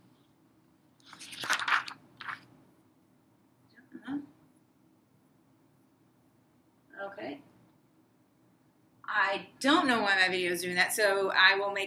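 A woman speaks clearly and calmly, close by.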